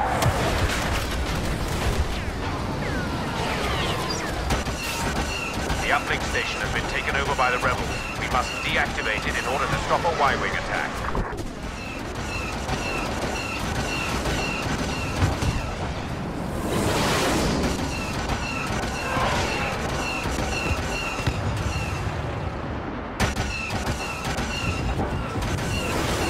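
Laser blasters fire in rapid bursts.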